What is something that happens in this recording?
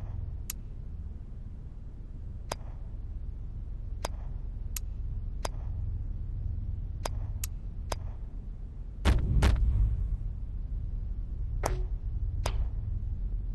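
Short, sharp menu clicks tick one after another.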